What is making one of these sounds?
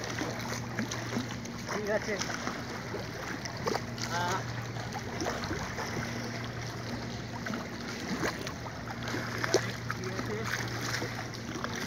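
Small waves lap against a stone bank.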